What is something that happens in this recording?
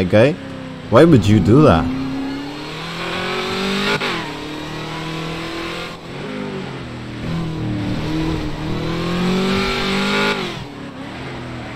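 A car engine hums and revs up and down as the car drives along.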